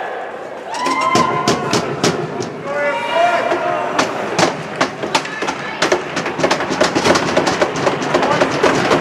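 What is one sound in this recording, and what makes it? Hockey sticks clack and tap on the ice.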